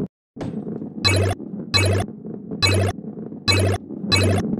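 Short bright chimes ring again and again as points are collected.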